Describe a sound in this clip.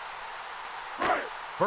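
A football is kicked off a tee with a sharp thump.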